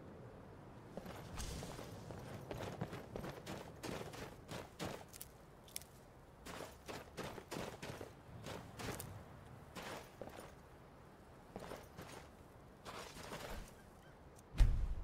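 Footsteps crunch quickly over snowy ground.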